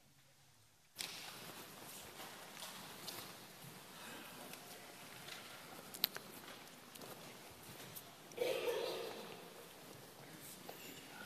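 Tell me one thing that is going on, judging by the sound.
A man speaks quietly through a microphone in a large room with some echo.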